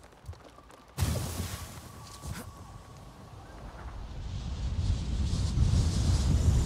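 Wind rushes and grows louder during a steep dive.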